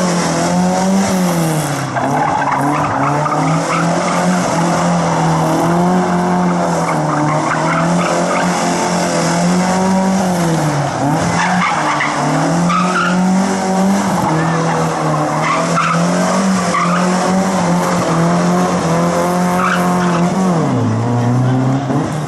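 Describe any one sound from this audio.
A rally car engine revs hard up and down, close by.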